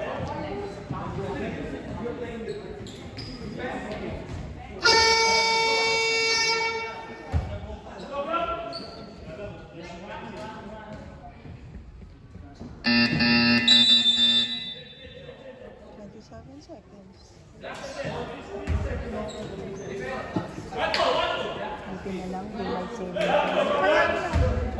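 Young players and adults talk and shout in a large echoing gym.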